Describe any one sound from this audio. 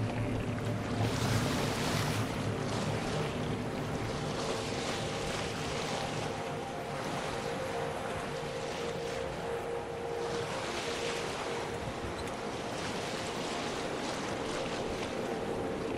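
Strong wind blows steadily over open water.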